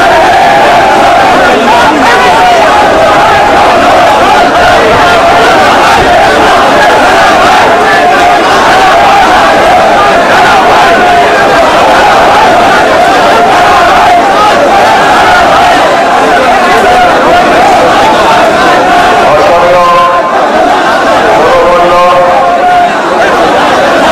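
A large crowd of men chants and shouts loudly outdoors.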